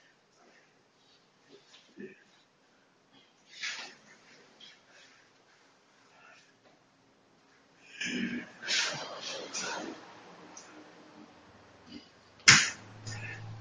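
Hands slap and thud against arms as two men spar.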